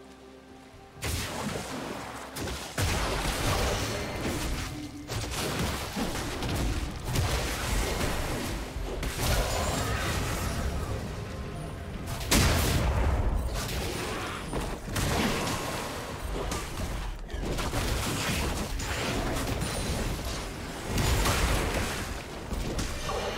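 Video game combat effects whoosh and clash.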